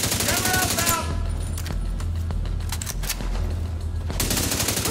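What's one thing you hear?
Distant gunshots crack sporadically.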